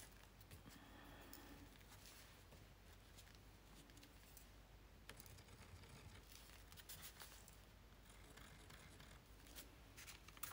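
A pen scratches lightly on a textured board.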